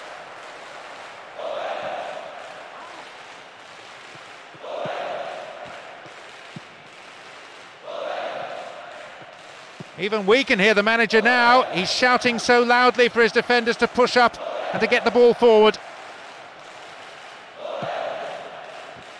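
A stadium crowd roars in repeated swells.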